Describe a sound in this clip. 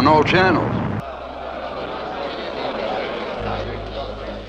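A man speaks calmly, heard through a television speaker.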